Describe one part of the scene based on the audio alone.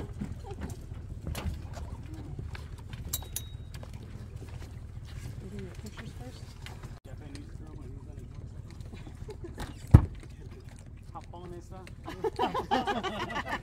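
Footsteps and knocks sound on a boat deck.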